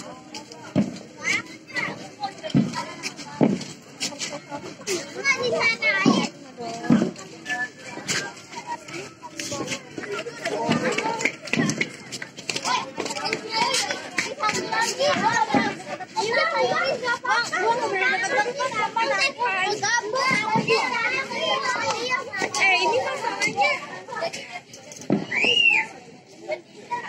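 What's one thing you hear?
A crowd of children and adults chatter and shout nearby.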